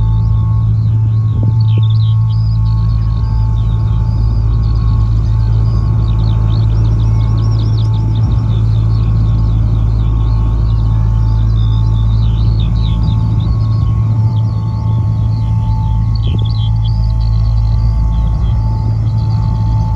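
A woman sings into a microphone, amplified through loudspeakers outdoors.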